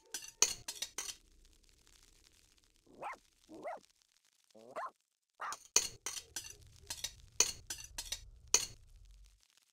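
Cutlery clinks against a plate in short bursts.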